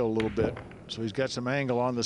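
Pool balls knock together on a table.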